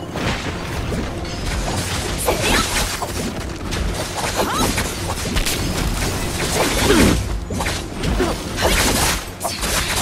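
Swords clash and slash in quick bursts.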